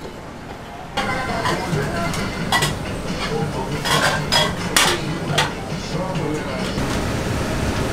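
Dishes and utensils clatter.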